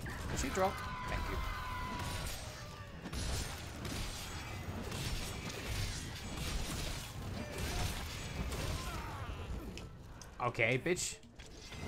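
Heavy blows and slashes strike with dull thuds throughout.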